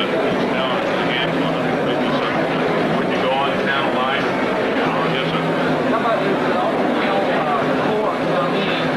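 A middle-aged man speaks steadily and earnestly to an audience.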